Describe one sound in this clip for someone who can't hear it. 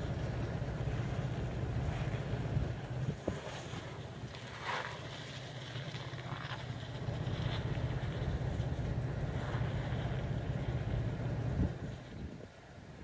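An off-road vehicle's engine growls as it climbs a steep slope nearby.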